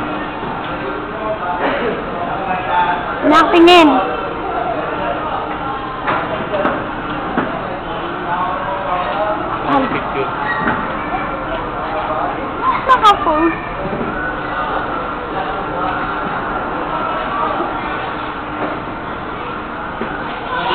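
Carousel music plays steadily throughout.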